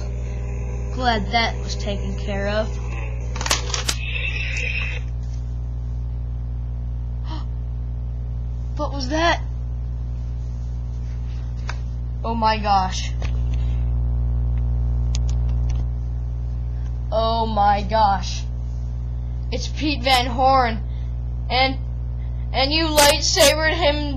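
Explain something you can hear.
A young girl talks playfully, close by.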